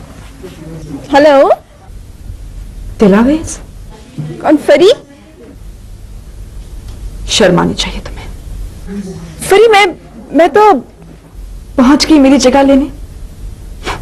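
A young woman talks loudly and with agitation into a telephone.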